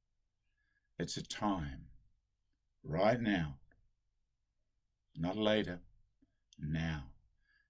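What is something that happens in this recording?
An elderly man speaks calmly and slowly in short phrases, close to a microphone.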